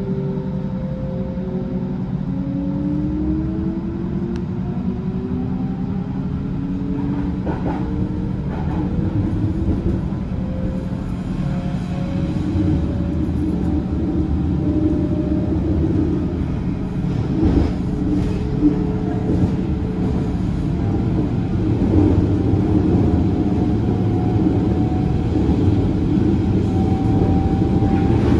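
An electric train motor whines, rising in pitch as the train picks up speed.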